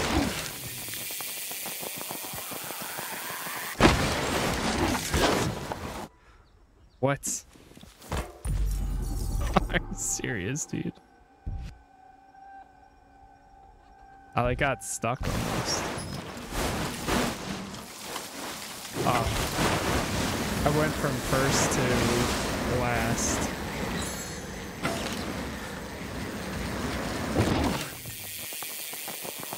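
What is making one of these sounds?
Bicycle tyres crunch and rattle over snow and dirt at speed.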